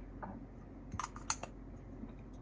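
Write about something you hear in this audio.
A plastic cap clicks back onto a small toy bottle.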